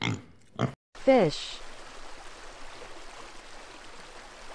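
Water splashes softly as fish churn at the surface.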